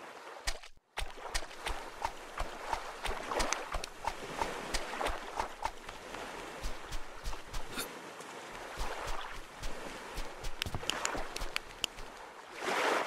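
Footsteps crunch on sand at a steady walking pace.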